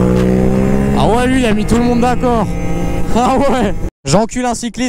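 A motorcycle engine revs sharply up and down in quick bursts.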